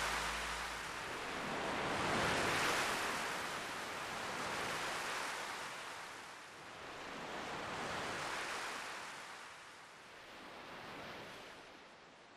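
Heavy sea waves crash against rocks and surge in a rushing roar.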